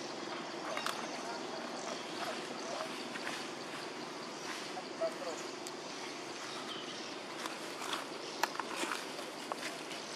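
A baby macaque squeaks.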